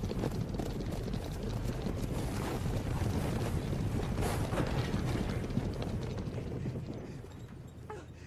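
A loud, rushing roar of billowing steam fills the air, then fades away.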